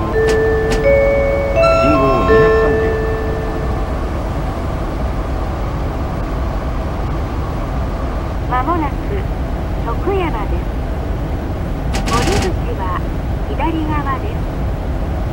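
A train rumbles steadily along the rails at high speed.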